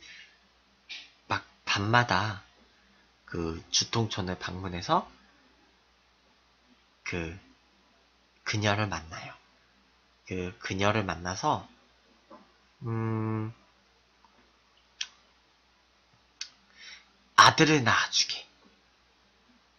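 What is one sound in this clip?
A young man talks casually and close to a microphone, in short bursts with pauses.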